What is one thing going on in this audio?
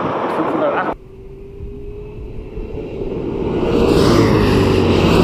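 A car's engine roars at full throttle in the distance.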